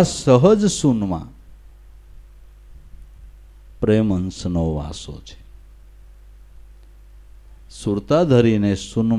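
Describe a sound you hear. An older man speaks expressively into a microphone, in short phrases with pauses.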